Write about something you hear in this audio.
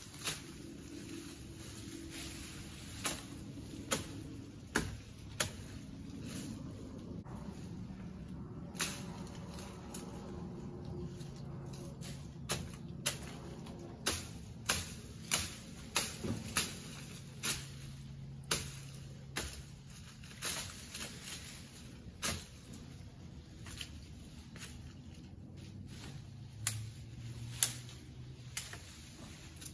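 Branches crack and snap sharply in a tree nearby.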